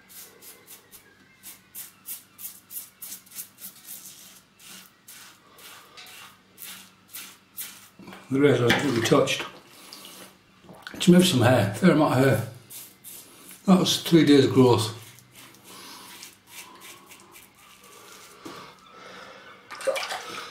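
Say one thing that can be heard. A razor scrapes over stubble in quick strokes, close up.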